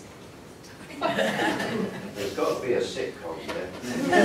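Women laugh and talk together.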